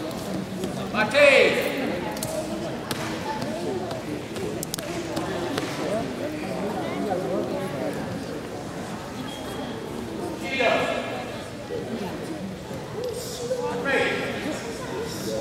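A male judo referee calls out commands in a large echoing hall.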